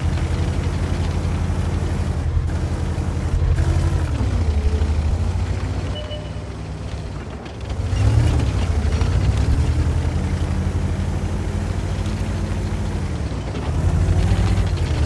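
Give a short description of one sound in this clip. A heavy tank's engine rumbles as the tank drives, its pitch rising and falling.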